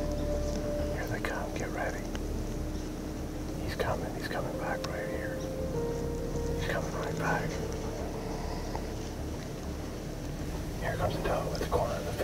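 A man speaks softly in a low voice close to the microphone.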